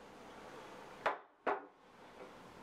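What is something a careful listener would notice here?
A glass bottle knocks down onto a glass surface.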